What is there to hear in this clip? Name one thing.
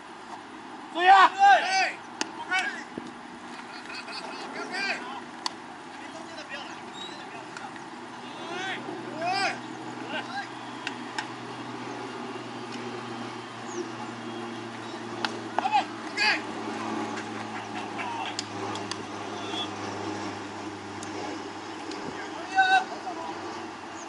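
Young men shout and call out across an open field outdoors.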